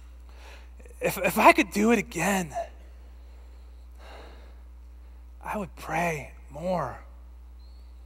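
A man speaks slowly and with emotion, in short bursts.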